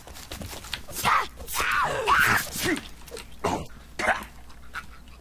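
A blade strikes a body with heavy wet thuds.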